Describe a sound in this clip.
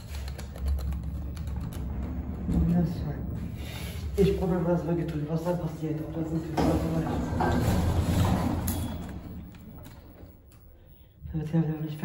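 An elevator hums low and steadily.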